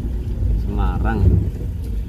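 A windshield wiper sweeps once across the glass.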